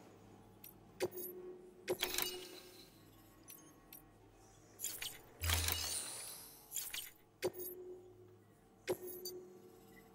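Short electronic blips and clicks sound now and then.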